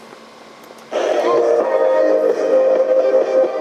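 A small radio plays through its tinny speaker.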